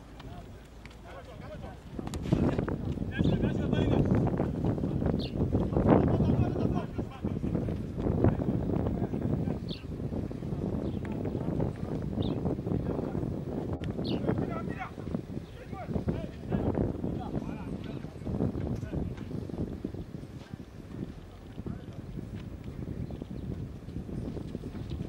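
Young men shout and call out across an outdoor field.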